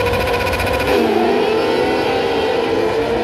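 Racing engines roar loudly as karts pull away.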